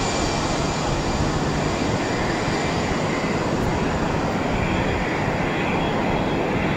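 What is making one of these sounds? Jet engines roar steadily as an airliner taxis close by.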